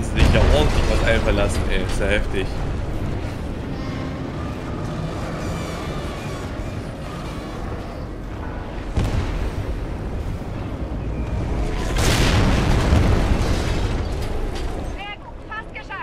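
Explosions rumble and roar deeply.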